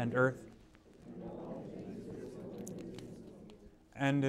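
A congregation murmurs a reply together.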